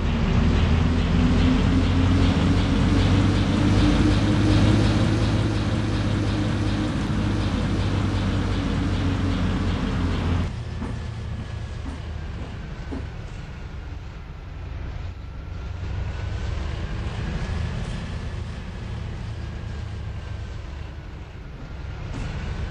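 A bus engine rumbles steadily, loud at first and then more muffled.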